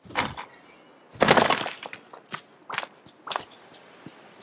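A pickaxe strikes rock with a sharp crack.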